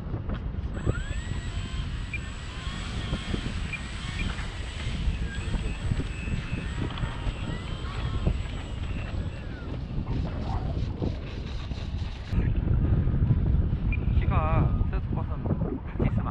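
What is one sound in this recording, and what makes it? Wind blusters against a microphone outdoors, growing stronger partway through.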